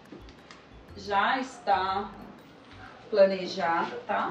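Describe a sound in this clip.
A woman speaks clearly and with animation, close by.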